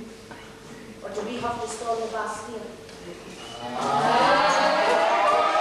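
A mixed group of children and adults sings together in a large hall.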